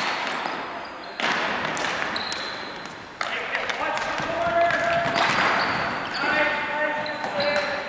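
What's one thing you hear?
Hockey sticks clack against a ball and each other in a large echoing hall.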